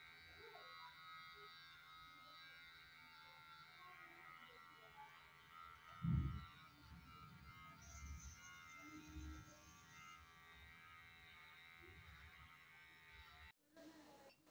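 An electric hair clipper buzzes steadily close by.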